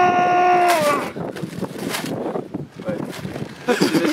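Wrapping paper flaps and rustles in the wind.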